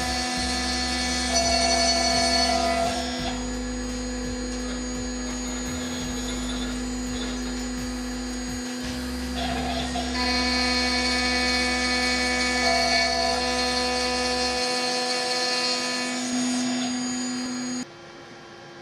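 A machine spindle whines steadily as it drills into wood.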